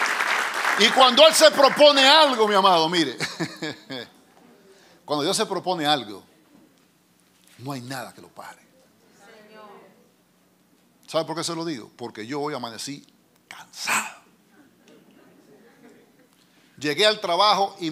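A middle-aged man preaches with animation through a microphone, pausing often.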